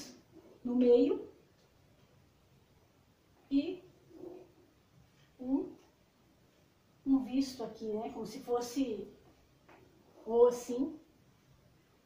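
A young woman speaks calmly and clearly close by, in short phrases.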